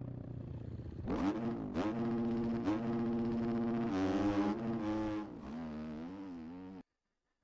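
A dirt bike engine revs hard, rising and falling in pitch as it rides away.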